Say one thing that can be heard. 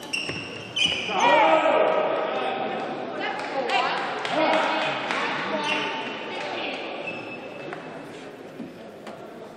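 Spectators cheer and shout after a rally.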